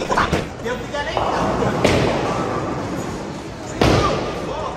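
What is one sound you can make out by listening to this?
A bowling ball rolls down a wooden lane with a low rumble.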